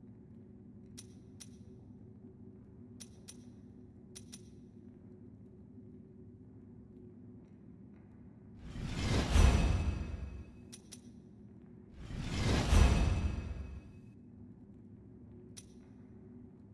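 Soft menu clicks tick as a selection moves.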